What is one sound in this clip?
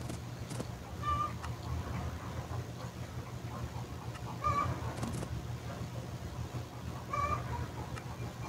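A horse whinnies in short bursts.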